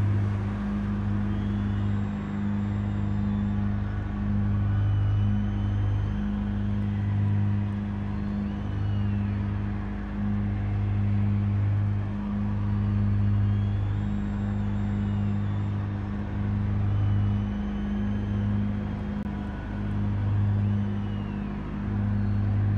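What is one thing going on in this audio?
A racing car engine idles with a steady low rumble.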